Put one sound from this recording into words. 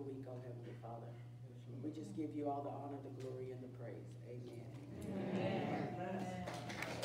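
A woman speaks calmly in an echoing room.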